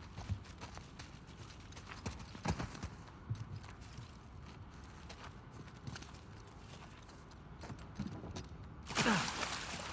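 Footsteps rustle through grass and leaves.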